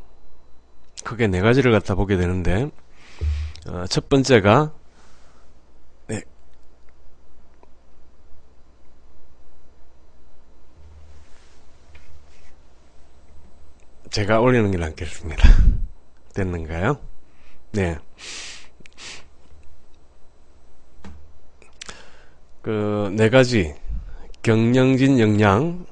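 A middle-aged man talks calmly into a close microphone, in bursts with pauses.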